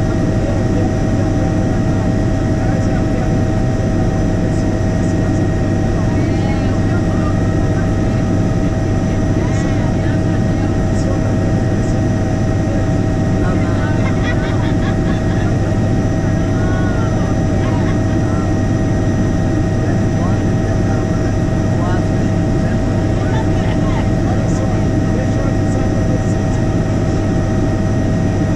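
A helicopter engine and rotor drone loudly and steadily.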